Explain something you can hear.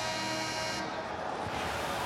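A young man shouts.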